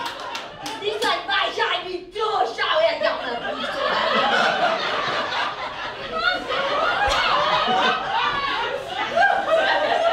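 A young man talks on stage.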